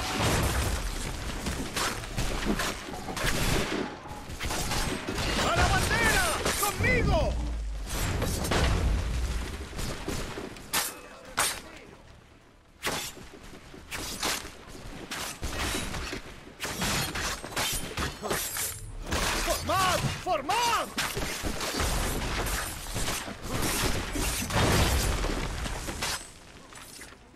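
Swords and bayonets clash and strike in a fight.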